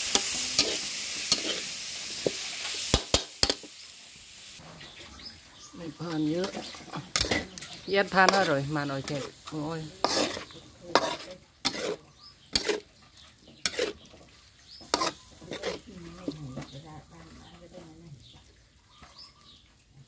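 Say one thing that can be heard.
A metal spatula scrapes and clanks against a pan.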